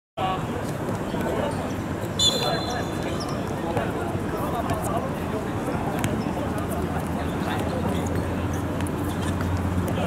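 Young men call out to each other across an outdoor court.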